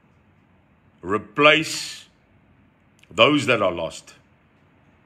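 A middle-aged man speaks calmly and close to the microphone, in short phrases.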